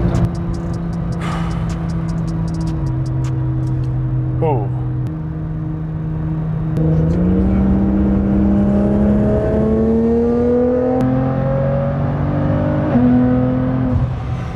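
A car engine hums steadily, then revs higher as the car speeds up through the gears.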